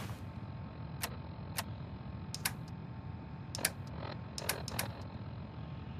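A device clicks a few times as buttons are pressed.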